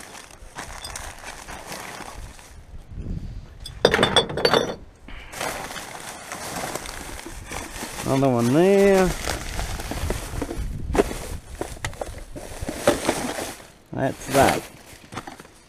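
Bottles and cans clink and rattle.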